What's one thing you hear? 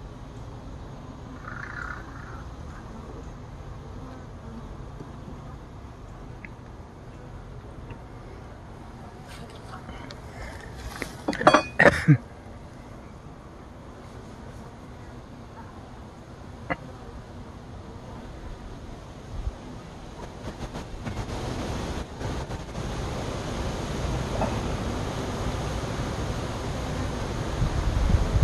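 Honeybees buzz around an open hive.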